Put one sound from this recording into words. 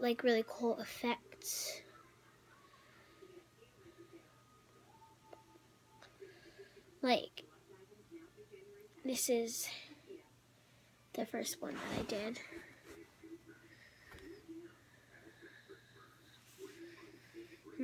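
A young girl talks casually close by, in short bursts.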